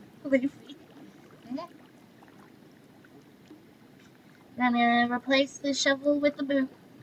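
A young woman talks animatedly, close to a microphone.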